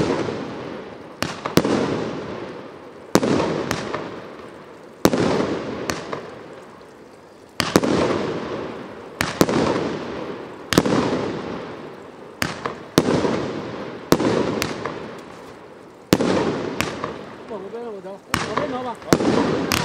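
Fireworks burst with loud booms that echo and rumble away.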